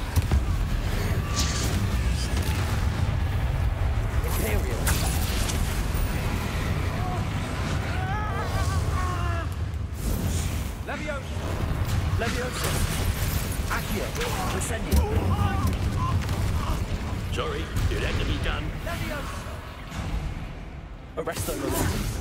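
Magic spells crackle and burst in quick blasts.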